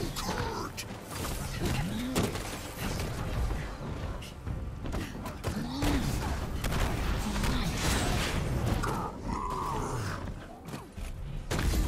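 Heavy punches thud and crash in quick succession.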